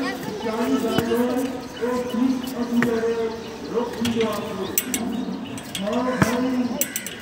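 Horse hooves clop on concrete.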